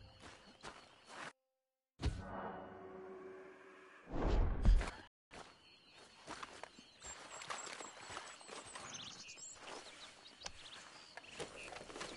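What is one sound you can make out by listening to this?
Footsteps crunch on sand and pebbles.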